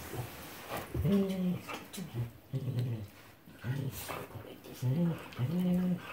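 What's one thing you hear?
Dogs growl and grumble while play-fighting up close.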